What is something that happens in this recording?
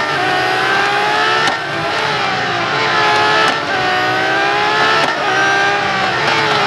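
A racing car engine roars at high revs, rising in pitch and dropping briefly with each gear change.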